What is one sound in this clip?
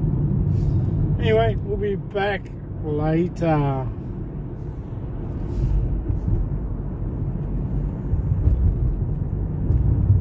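A car engine rumbles steadily inside a moving car.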